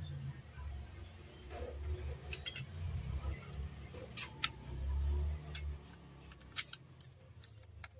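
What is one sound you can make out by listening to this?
A plastic cover clatters against a metal case as it is handled.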